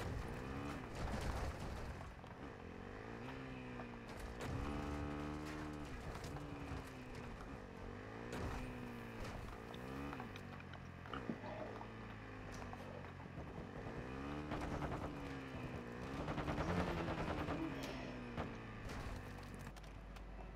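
A motorcycle engine revs up and down as it rides.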